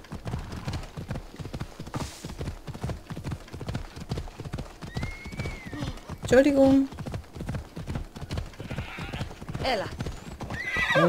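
Horse hooves clop at a steady gallop on a dirt path.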